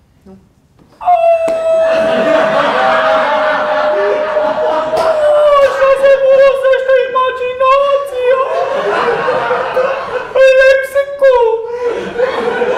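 A man sings in a loud, sustained voice.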